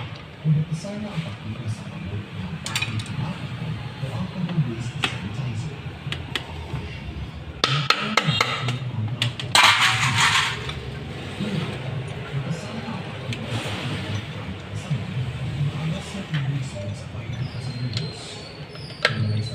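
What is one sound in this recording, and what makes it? A wrench clinks against metal.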